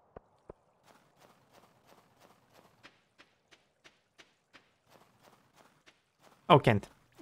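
Soft footsteps crunch steadily on snow.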